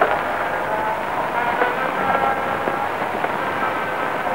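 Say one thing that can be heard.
Footsteps tap along a hard floor.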